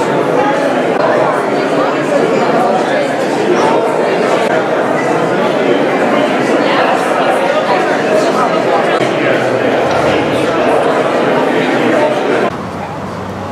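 A crowd of men and women chatters loudly all around.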